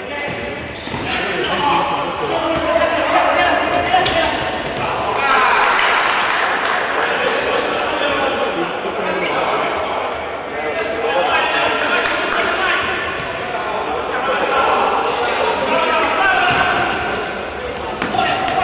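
A futsal ball thuds as it is kicked on an indoor court.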